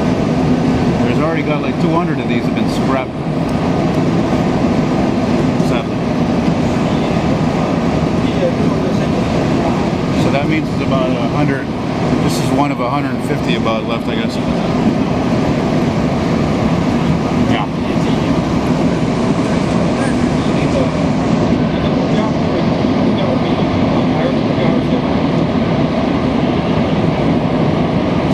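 A subway train rumbles and rattles steadily along the tracks.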